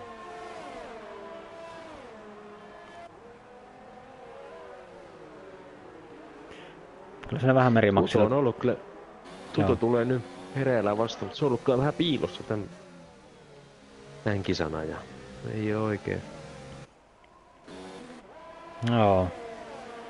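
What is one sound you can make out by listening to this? A racing car engine roars and whines, rising and falling in pitch as it shifts gears.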